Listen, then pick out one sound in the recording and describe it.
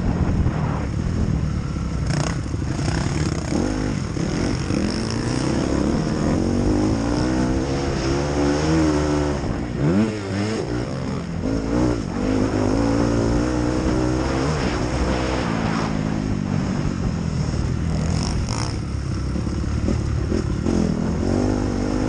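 A motorcycle engine revs loudly close by, rising and falling in pitch as gears change.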